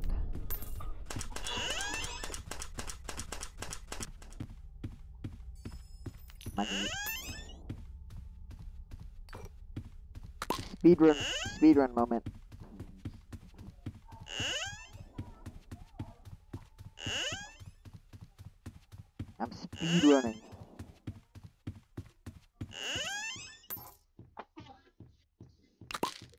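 Footsteps thud steadily on a carpeted floor.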